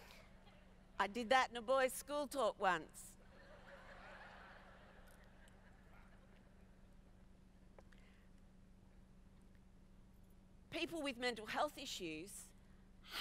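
A middle-aged woman speaks with animation through a microphone in a large hall.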